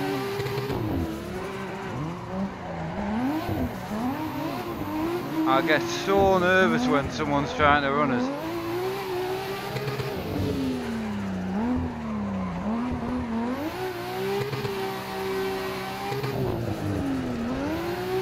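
A car engine revs up and down constantly.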